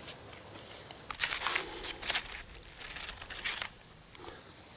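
Crisp fried food crackles as hands tear it apart.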